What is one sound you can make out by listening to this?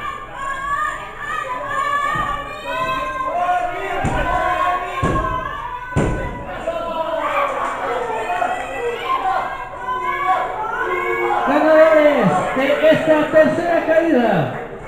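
Spectators shout and cheer nearby in an echoing hall.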